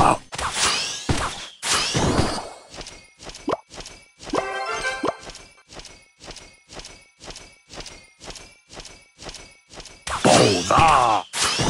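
Small game fighters clash with quick tinny blows.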